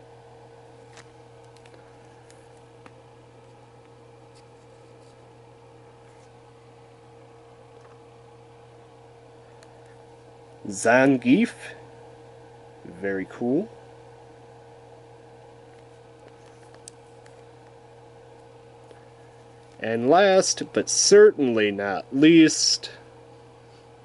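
A small plastic figure taps down on a hard surface.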